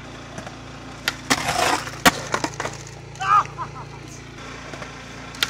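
A skateboard lands with a sharp clack and rolls away.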